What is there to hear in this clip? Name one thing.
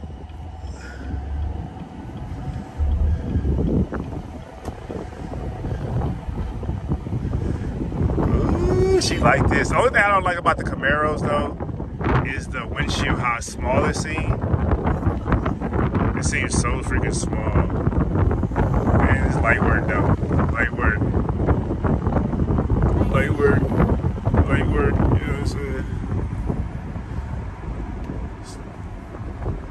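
Wind rushes loudly past an open-top car as it drives.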